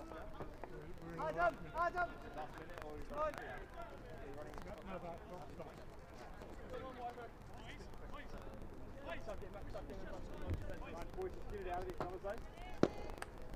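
Men shout and call out across an open outdoor field.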